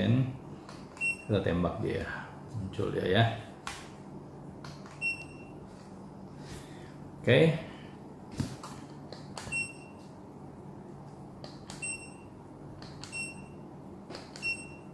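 A handheld thermometer gives short high beeps.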